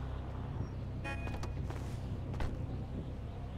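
A car door opens and shuts with a clunk.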